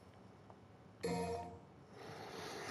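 A menu chime sounds.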